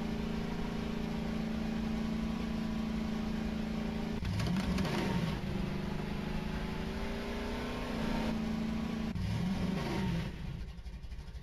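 A quad bike engine drones and revs up and down.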